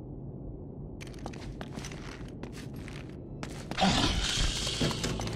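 Footsteps crunch over rubble.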